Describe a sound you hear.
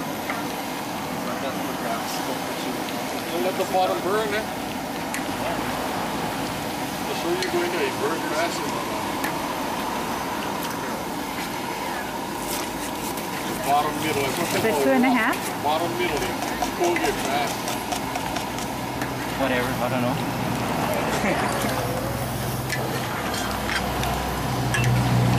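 Meat sizzles steadily in a hot pan outdoors.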